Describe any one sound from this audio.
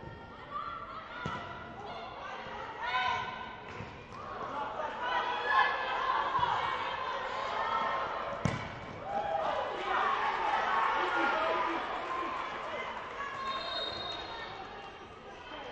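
Players and spectators shout and call out across a large echoing hall.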